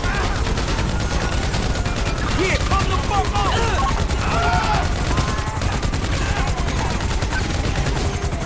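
A helicopter's rotor thumps and roars close by.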